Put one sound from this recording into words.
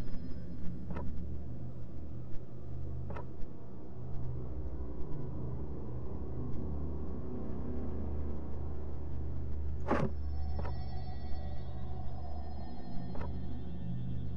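Short menu clicks sound now and then as selections change.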